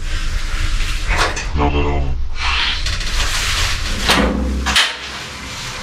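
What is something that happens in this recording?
A young man raps close by with energy.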